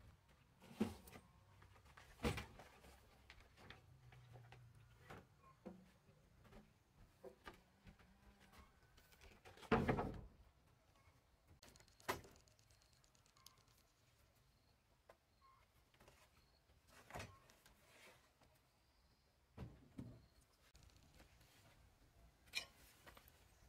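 Wooden planks knock and clatter against wooden posts and decking.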